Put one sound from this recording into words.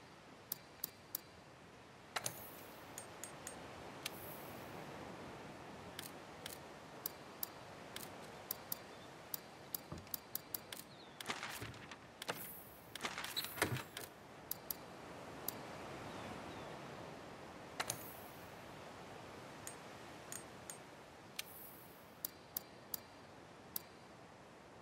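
Short electronic menu clicks tick again and again as a cursor moves between items.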